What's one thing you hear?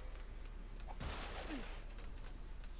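Bricks burst apart with a short clattering crash.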